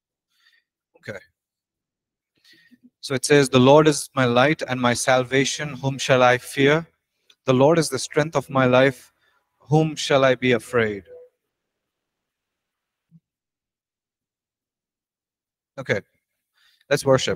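A young man reads aloud into a microphone, calmly, with pauses.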